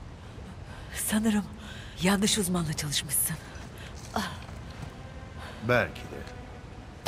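A young woman speaks breathlessly.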